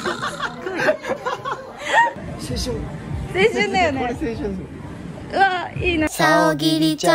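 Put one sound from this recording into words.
A young woman and a young man talk excitedly close by.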